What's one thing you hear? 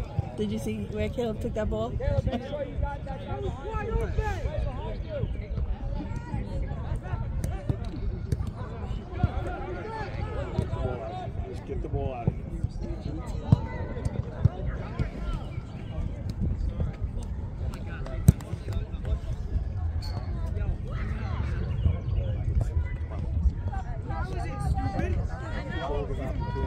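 Players shout and call out across a field outdoors.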